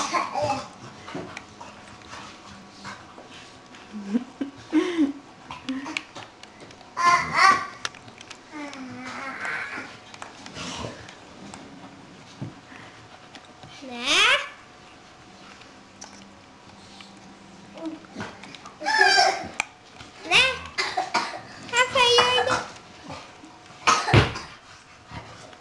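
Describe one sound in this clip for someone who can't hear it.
A young boy talks nearby with animation.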